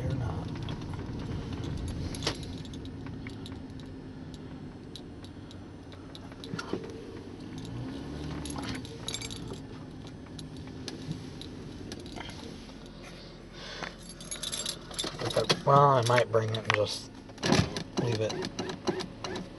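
A car drives along a street, its engine and tyres heard from inside the car.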